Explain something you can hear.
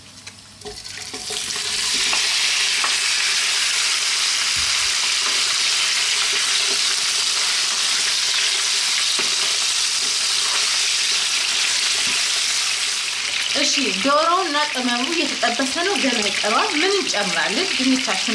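Meat sizzles loudly in hot oil in a frying pan.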